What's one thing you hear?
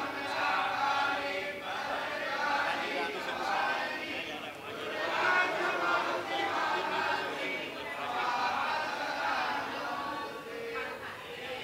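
A group of men and women sing together in a slow chant.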